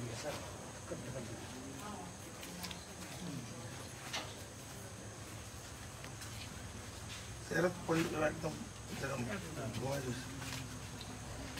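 Men talk quietly nearby in a crowd outdoors.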